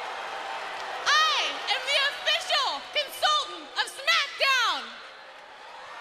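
A woman speaks loudly and with animation through a microphone.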